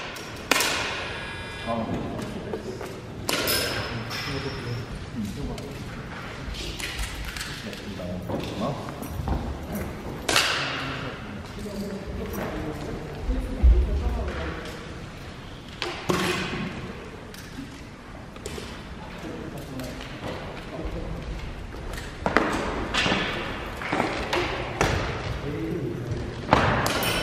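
Sharp gunshots crack and echo through a large hall.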